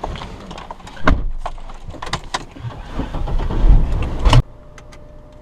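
Hands rub and knock on a steering wheel cover.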